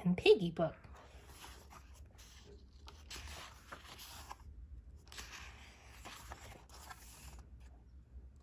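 Paper pages turn and rustle softly.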